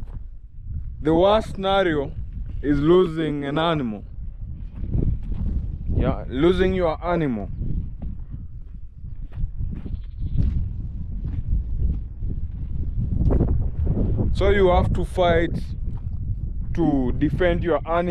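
A man speaks calmly and close by, outdoors in wind.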